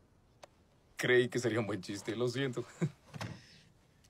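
A man speaks calmly from inside a car.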